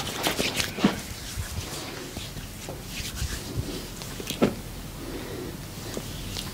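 Hands knead and rub bare skin softly.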